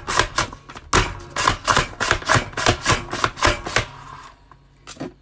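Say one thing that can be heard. A vegetable cutter clunks sharply as potatoes are pushed through its blades.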